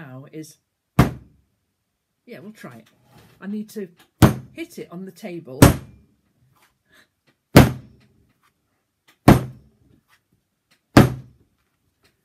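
Clay slaps down hard on a table, again and again.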